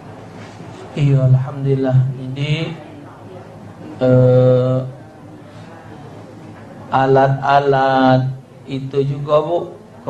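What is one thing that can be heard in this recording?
An elderly man chants in a drawn-out, melodic voice through a microphone, echoing in a large room.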